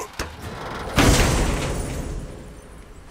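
A heavy chest lid creaks open with a rushing burst.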